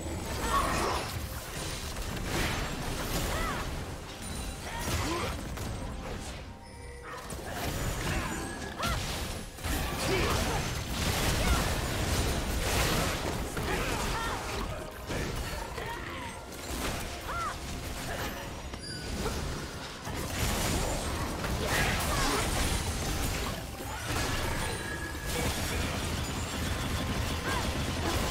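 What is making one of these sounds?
Spell effects crackle, whoosh and clash in a game battle.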